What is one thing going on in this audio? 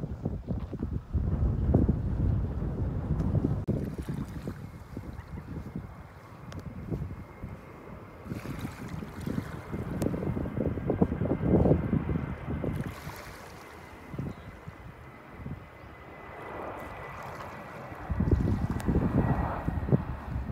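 Wind blows outdoors, rumbling in gusts.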